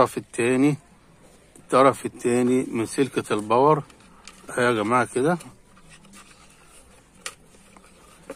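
A hard plastic casing knocks and scrapes as hands handle it.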